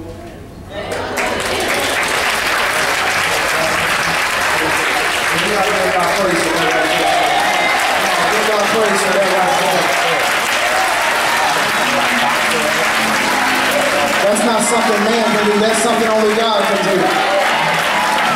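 A choir and congregation sing loudly.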